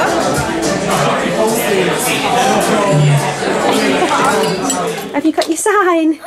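Many people chatter in a busy room.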